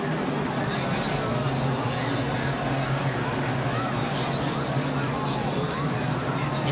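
Racing car engines drone steadily.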